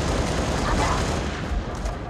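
Gunfire rattles in short bursts.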